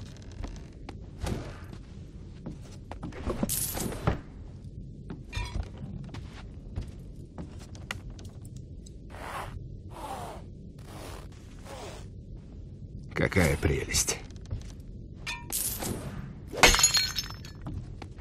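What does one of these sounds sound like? Small objects clink as a hand picks them up.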